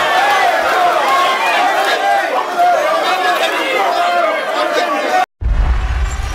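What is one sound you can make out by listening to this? A crowd cheers and shouts loudly in a noisy room.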